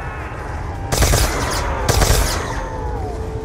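A gun fires in loud, sharp bursts.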